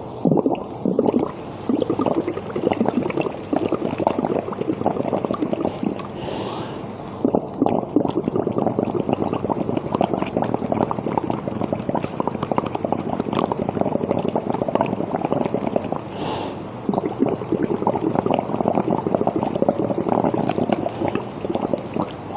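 A man blows through a straw, making liquid bubble and gurgle steadily.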